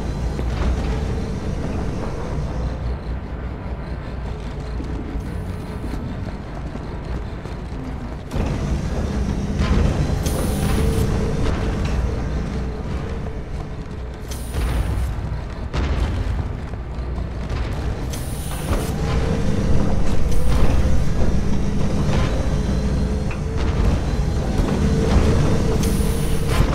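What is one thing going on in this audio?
Footsteps tread steadily across a hard metal floor.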